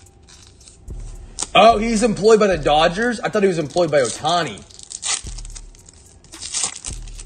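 A foil wrapper crinkles up close.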